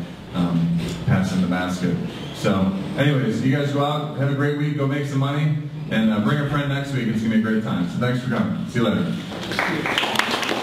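A man speaks with animation through a microphone and loudspeaker.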